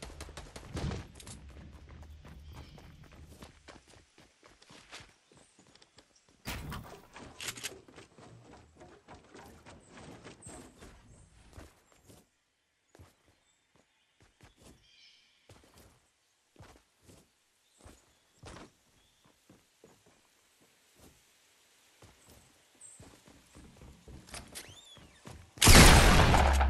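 Footsteps tap quickly on hard ground and wooden planks.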